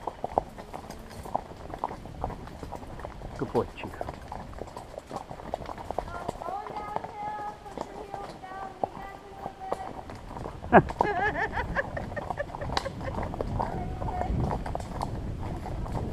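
A horse's hooves clop and crunch steadily on a dirt trail.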